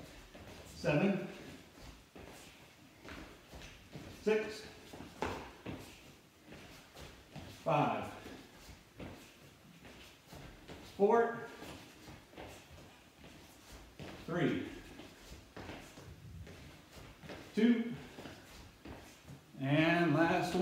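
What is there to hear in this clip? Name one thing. Feet thump on a hard floor as two people jump about.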